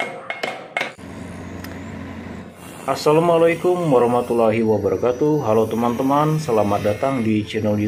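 An angle grinder whirs and cuts through sheet metal.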